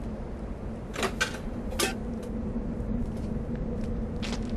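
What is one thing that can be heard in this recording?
Objects crack and burst in the fire with sharp pops.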